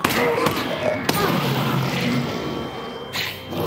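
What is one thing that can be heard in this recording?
A loud explosion booms.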